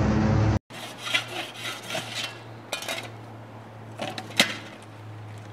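A shovel scrapes and knocks against hard ground.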